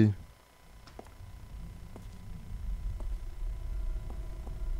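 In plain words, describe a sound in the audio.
Footsteps echo on a hard floor.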